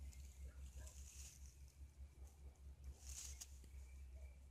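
Grass blades rustle as a finger brushes through them.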